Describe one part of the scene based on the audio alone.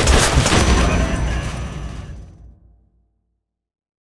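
An explosion roars and fades into silence.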